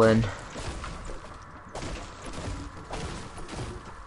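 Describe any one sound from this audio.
A pickaxe chops repeatedly at a tree trunk.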